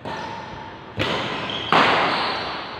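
A racket smacks a shuttlecock.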